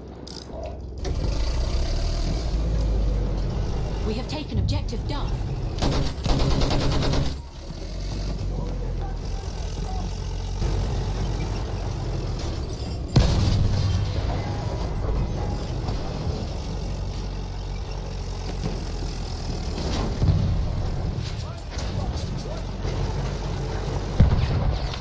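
A light tank's engine rumbles.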